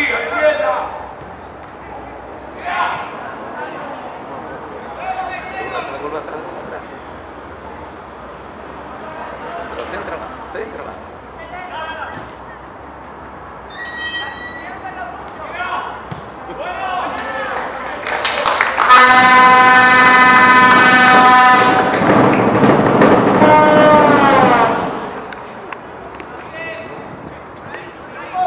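Young men shout and call out to each other outdoors at a distance.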